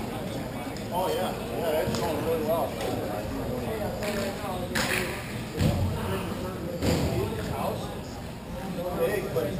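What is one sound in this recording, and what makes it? Young men call out to each other from across a large echoing hall.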